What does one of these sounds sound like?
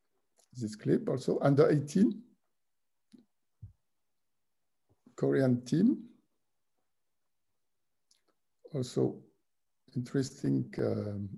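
A middle-aged man speaks calmly over an online call, in short phrases with pauses.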